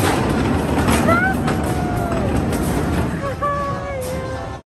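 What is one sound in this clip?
Metal wheels squeal against the track.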